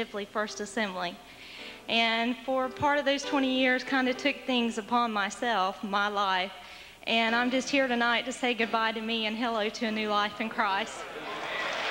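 A young woman speaks with feeling into a microphone, heard through loudspeakers in an echoing room.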